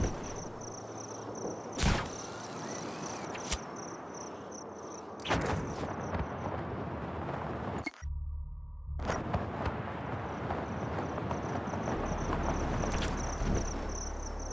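Wind rushes loudly past a gliding parachutist.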